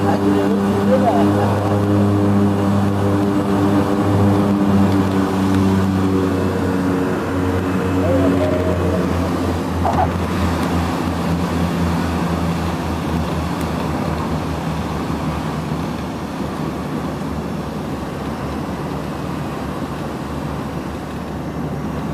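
Aircraft tyres rumble on a runway.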